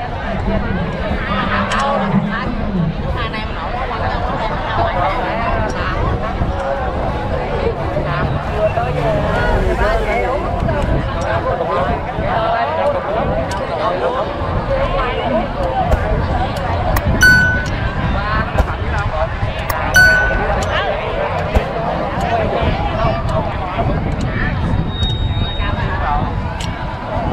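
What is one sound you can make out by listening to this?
A large outdoor crowd of men and women chatters and calls out.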